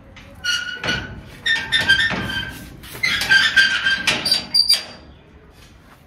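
A metal gate lock rattles and clanks.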